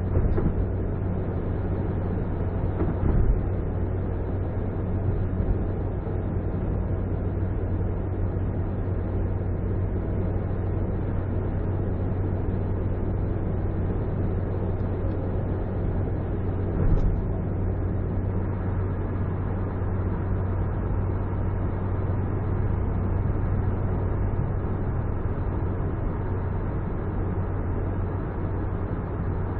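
Tyres roar steadily on a motorway.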